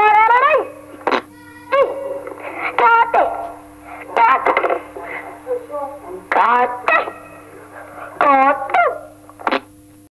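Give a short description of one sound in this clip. A radio hums steadily.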